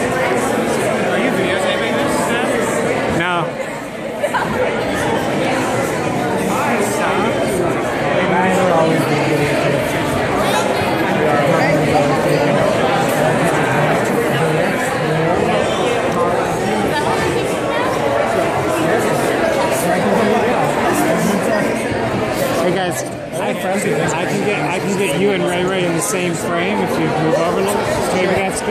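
A crowd of men and women chatters loudly all around in an echoing hall.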